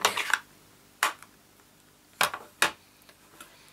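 A plastic case clicks open and taps down on a table.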